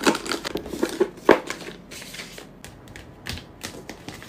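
Plastic packets crinkle as a hand sorts through them.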